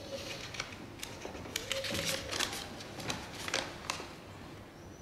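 Paper rustles as a letter is unfolded and handled.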